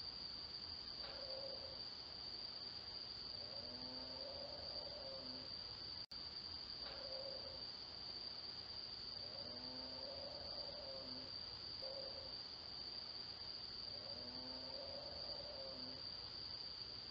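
A man nearby gives repeated hooting calls.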